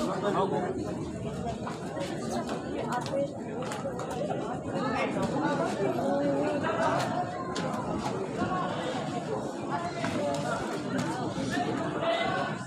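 A crowd of spectators chatters and shouts throughout.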